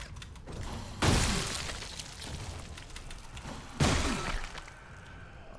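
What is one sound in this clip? Heavy thuds sound as a body is stomped.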